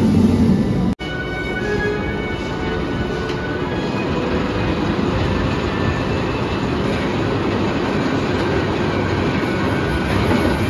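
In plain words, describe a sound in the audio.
A roller coaster train rolls slowly along its track with a clattering rumble.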